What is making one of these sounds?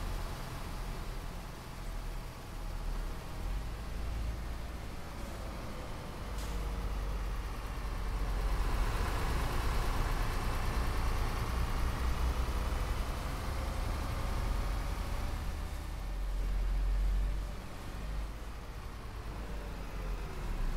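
A bus engine hums steadily and rises and falls in pitch as the bus drives along.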